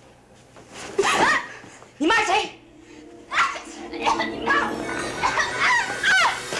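A young woman cries out and wails in distress, close by.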